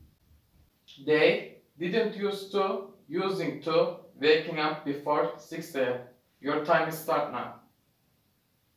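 A young man speaks clearly and calmly nearby.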